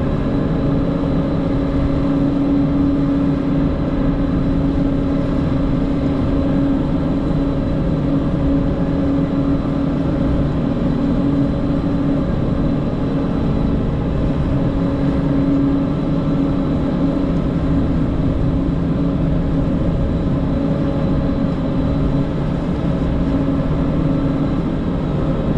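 A heavy tracked machine's diesel engine rumbles steadily.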